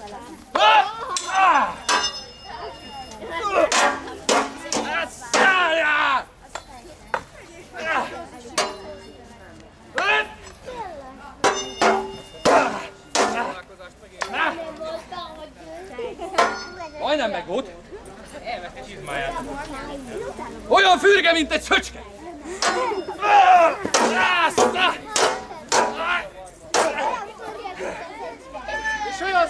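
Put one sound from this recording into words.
Men shout and yell with excitement, close by.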